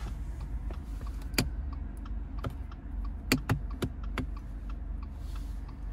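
Plastic taps and clicks softly under fingers.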